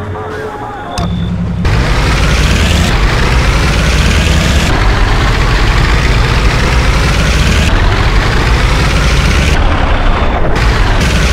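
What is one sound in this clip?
A heavy vehicle engine rumbles steadily as it drives along.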